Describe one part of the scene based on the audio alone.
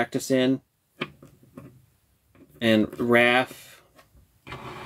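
A plastic toy taps on a hard tabletop.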